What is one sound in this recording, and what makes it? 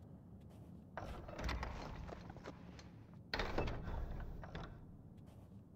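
A heavy wooden door rattles and knocks as it is pushed.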